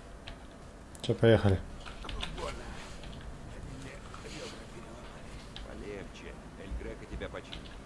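A young man talks excitedly into a nearby microphone.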